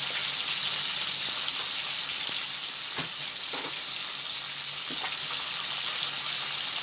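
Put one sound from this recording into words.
Fish sizzle and crackle steadily in hot oil.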